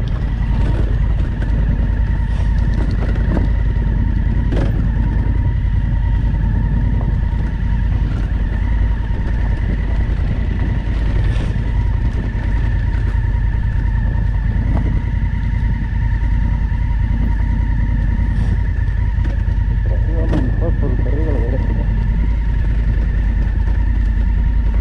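Tyres crunch and knock over a rough stony track.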